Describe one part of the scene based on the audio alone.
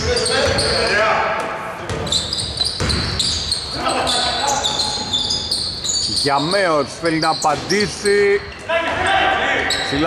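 A basketball bounces on the court with hollow thuds.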